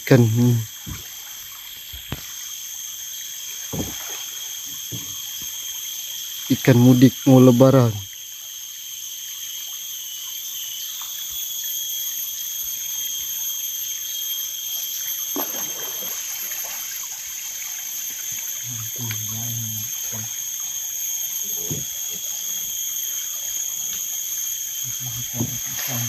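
A river flows gently past.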